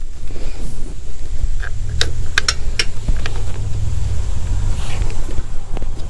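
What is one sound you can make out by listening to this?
Small metal parts click and clink against each other.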